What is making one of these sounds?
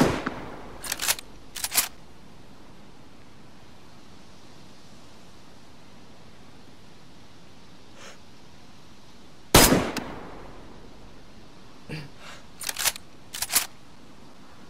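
A rifle bolt is worked back and forth with metallic clacks.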